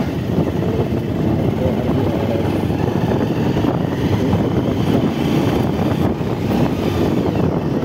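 Tyres crunch and rumble over a rough dirt track.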